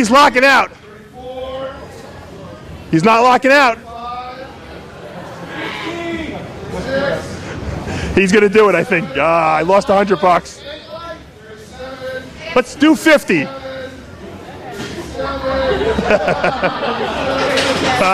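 A man grunts and shouts loudly with effort.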